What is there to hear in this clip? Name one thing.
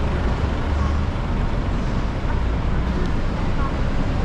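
A bus engine idles close by.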